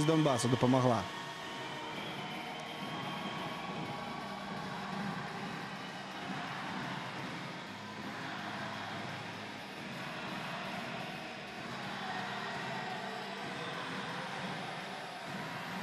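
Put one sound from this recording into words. A crowd cheers and claps in a large echoing arena.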